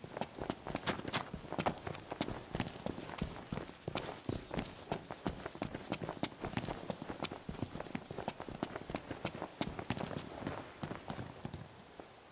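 Boots run quickly over grass and dirt.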